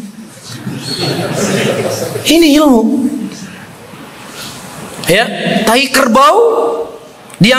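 A man speaks with animation into a microphone, heard through a loudspeaker.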